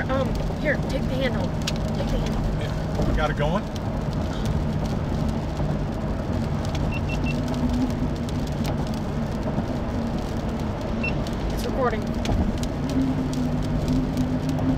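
Tyres roll on a wet road with a low rumble.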